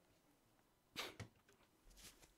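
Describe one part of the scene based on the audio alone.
A hard object is set down on a wooden table with a soft knock.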